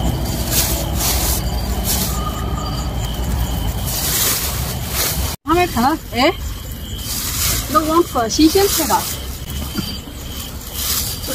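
A plastic bag rustles and crinkles as leafy vegetables are stuffed into it.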